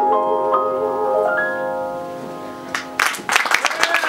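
A piano plays a sustained chord.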